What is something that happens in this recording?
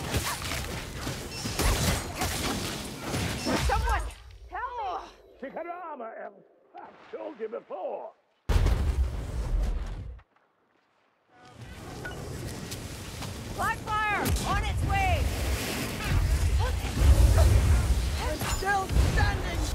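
Guns fire in quick, loud bursts.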